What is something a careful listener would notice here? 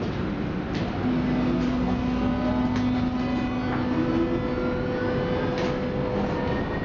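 Train wheels squeal and whine on the rails.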